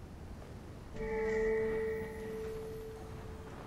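A bright, ringing chime sounds and fades.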